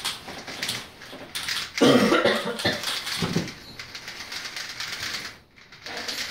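Plastic puzzle cubes click and rattle rapidly as they are twisted.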